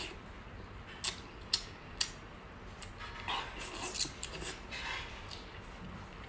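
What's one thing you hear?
A woman chews and slurps food noisily up close.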